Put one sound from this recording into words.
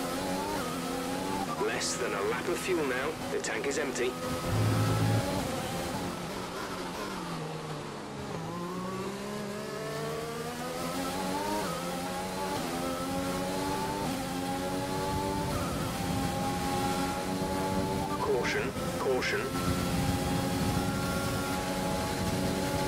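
A racing car engine whines, rising and falling in pitch as it speeds up and shifts gears.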